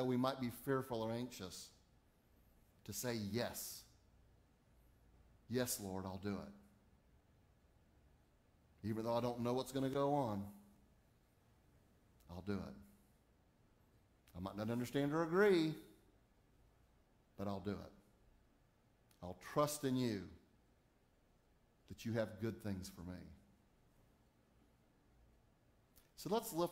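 A middle-aged man speaks calmly through a microphone in phrases with pauses.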